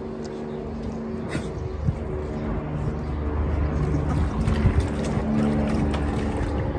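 A dog splashes its paws in shallow water.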